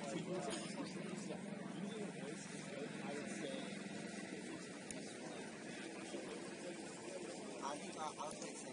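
A crowd of people chatters and calls out at a distance outdoors.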